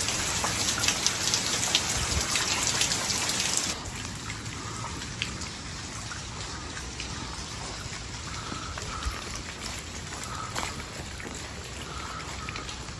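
Light rain falls steadily outdoors.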